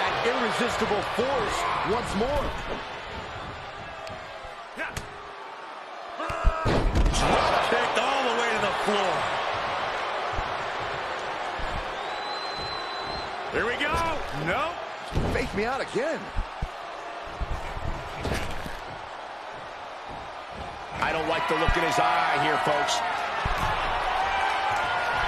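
A crowd cheers steadily in a large arena.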